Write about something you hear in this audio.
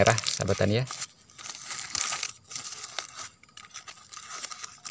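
A dry leaf wrapper crinkles and rustles as hands unfold it.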